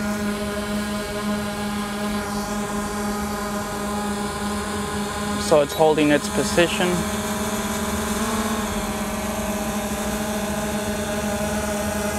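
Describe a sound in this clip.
A small drone's propellers whine steadily close by.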